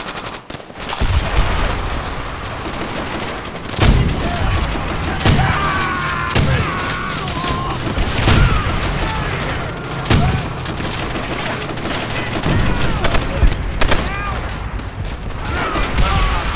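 Gunfire and explosions rumble across a battlefield.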